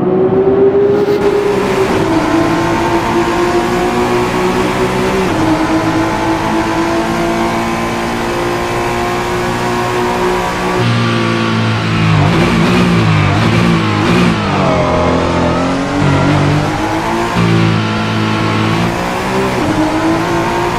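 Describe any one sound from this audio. A racing car engine roars at high revs, shifting gears and dropping in pitch under braking.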